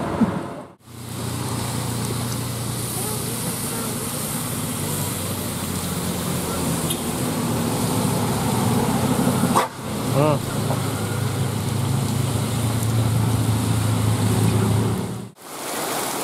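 Motorcycle engines buzz past.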